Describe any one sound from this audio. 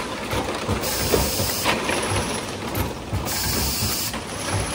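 Compressed air hisses in short bursts.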